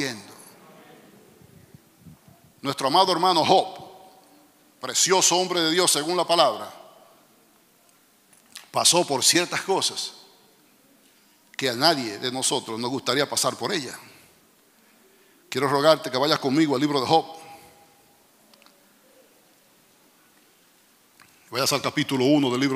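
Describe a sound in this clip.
A man speaks with animation into a microphone, in bursts with pauses, in a hall with a slight echo.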